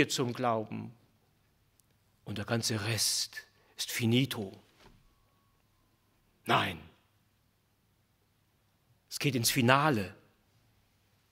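A middle-aged man speaks calmly into a microphone in short phrases with pauses.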